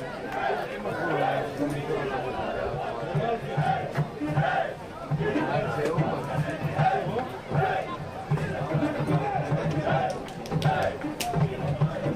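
A crowd of spectators chants and shouts outdoors.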